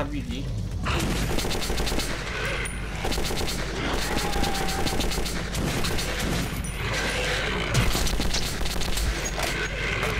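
A creature snarls and growls.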